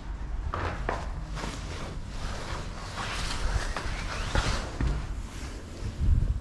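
Footsteps thud down concrete stairs in an echoing stairwell.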